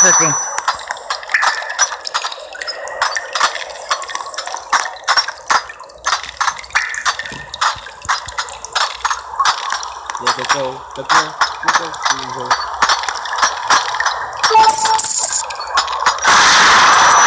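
A pickaxe chips at rock in quick, repeated knocks.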